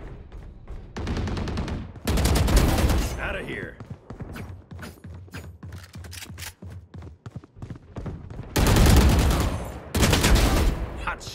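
A rifle fires rapid bursts of shots up close.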